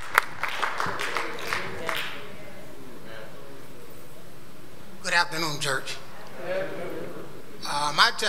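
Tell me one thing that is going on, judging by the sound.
A middle-aged man speaks steadily into a microphone in an echoing hall.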